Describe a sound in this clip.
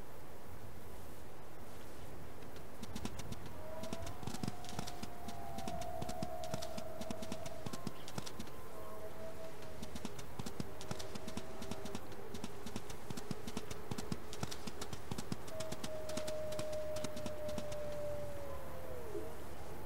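Paws patter softly over grass and rock.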